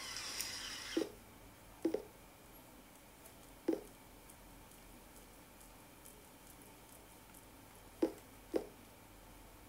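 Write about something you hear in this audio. Fingers tap lightly on a tablet's glass.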